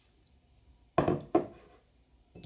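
A plastic bottle thumps down on a wooden table.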